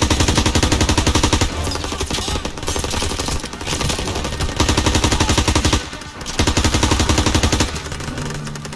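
A submachine gun fires in rapid bursts close by.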